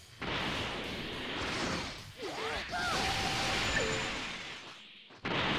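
An energy blast roars and crackles.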